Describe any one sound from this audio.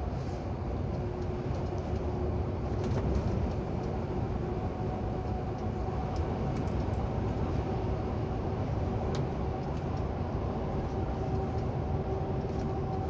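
Tyres roll steadily on asphalt.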